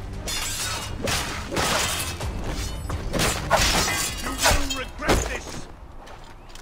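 Blades clash and strike in a close fight.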